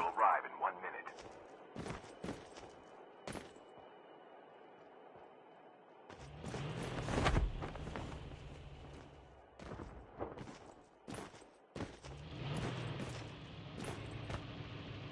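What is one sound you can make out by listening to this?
Footsteps thud on rocky ground.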